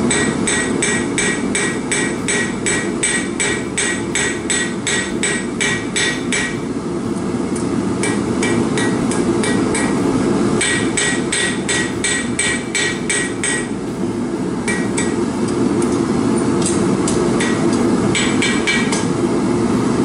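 A hammer rings sharply on an anvil in quick, steady blows.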